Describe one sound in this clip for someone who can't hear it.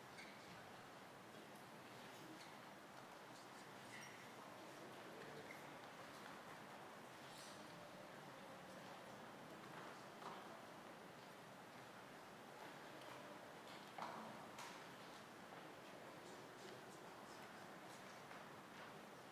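A large congregation murmurs softly in a big echoing hall.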